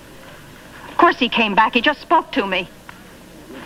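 A young woman speaks with urgency up close.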